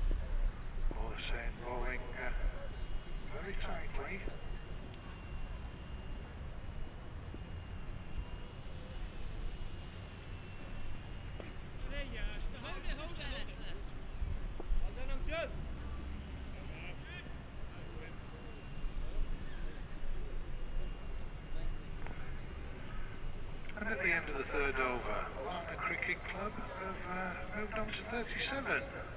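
Men talk and call out on an open field.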